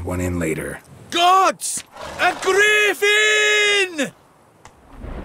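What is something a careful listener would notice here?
A man shouts excitedly in a high voice.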